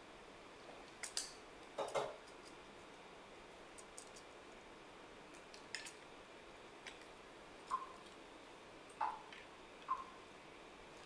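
Plastic parts of a toy click as they are moved.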